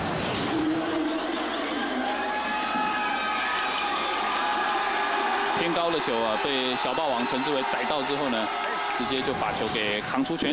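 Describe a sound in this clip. A crowd cheers loudly in a large stadium.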